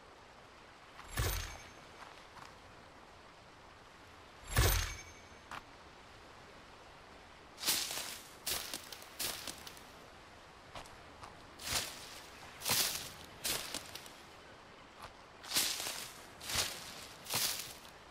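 Fern leaves rustle in short bursts as someone brushes through them.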